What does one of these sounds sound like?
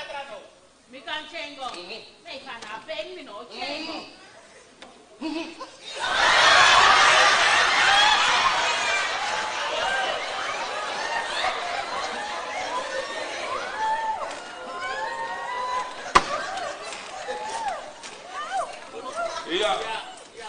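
Several women talk loudly and with animation on a stage.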